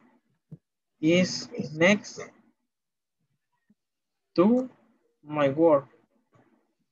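A man speaks calmly through an online call, in short bursts.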